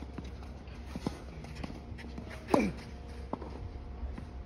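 A tennis ball is struck with a racket at a distance.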